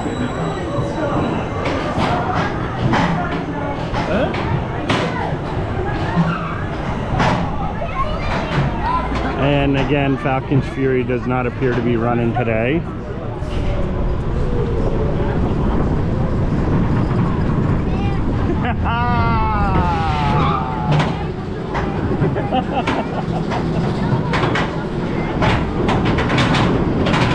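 A roller coaster train rumbles and rattles along its track.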